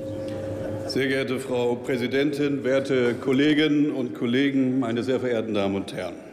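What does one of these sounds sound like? A man speaks firmly into a microphone, amplified through loudspeakers in a large hall.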